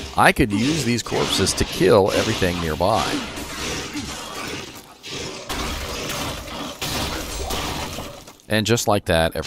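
Magic spells crackle and blast in a game.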